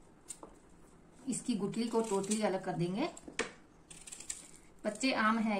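A small knife scrapes softly while peeling a potato.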